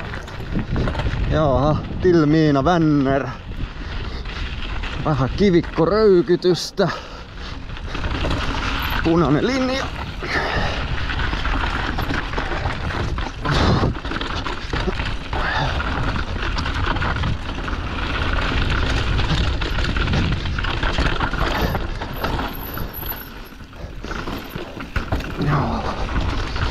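Bike tyres crunch and rattle over a rough dirt track.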